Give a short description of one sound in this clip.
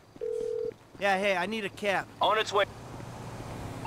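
A man speaks on a phone call.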